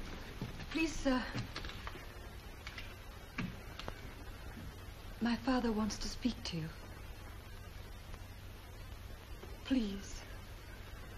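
A young woman speaks softly at close range.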